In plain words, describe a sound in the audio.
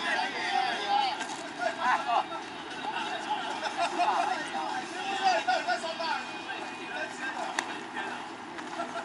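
Young men shout and call out across an open outdoor field.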